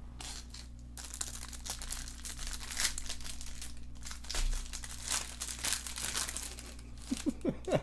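A plastic wrapper crinkles and tears.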